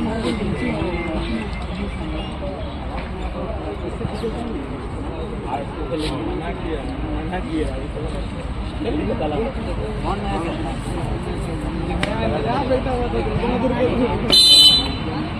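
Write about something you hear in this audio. A crowd of young men chatters and calls out outdoors.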